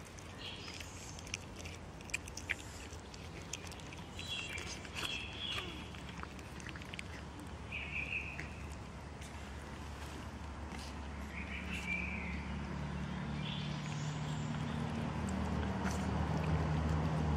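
Several cats chew and lap wet food from a plastic tray.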